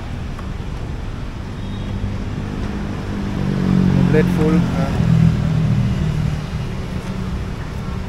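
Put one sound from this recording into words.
A fuel pump hums steadily as fuel flows into a scooter's tank.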